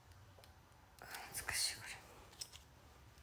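A plastic wrapper crinkles in someone's hands.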